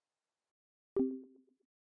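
A short two-tone electronic chime rings out once.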